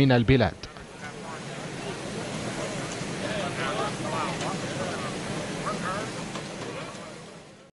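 A group of men murmurs and chatters nearby.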